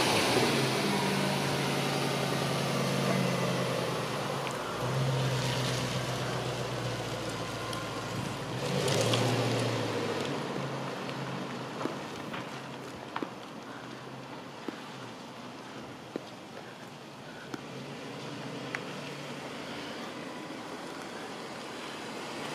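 A car engine hums and revs as the car pulls away, then fades into the distance.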